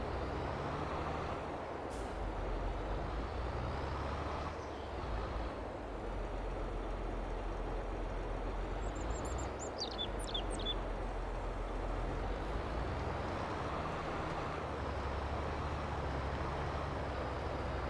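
A tractor engine rumbles steadily as it drives along.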